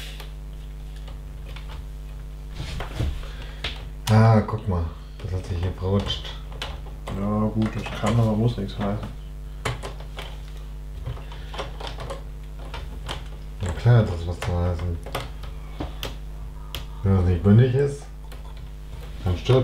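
Plastic bricks click and snap together.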